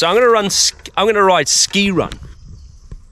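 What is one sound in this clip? A man speaks with animation close to a microphone, outdoors.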